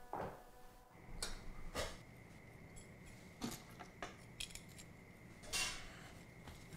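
Small hard pieces click and clatter onto a hard tabletop.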